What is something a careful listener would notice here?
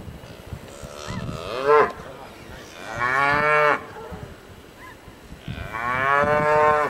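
A cow moos loudly close by.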